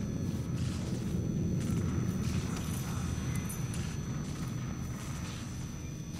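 A fire crackles in a fireplace.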